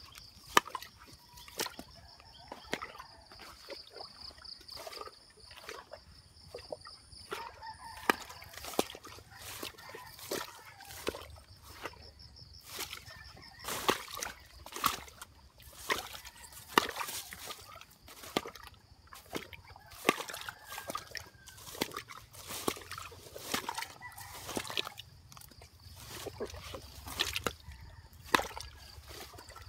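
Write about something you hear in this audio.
Footsteps crunch and rustle through undergrowth at a walking pace.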